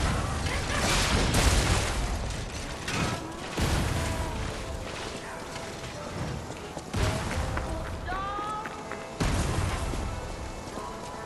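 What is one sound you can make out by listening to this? Weapons clash and bang in a fight.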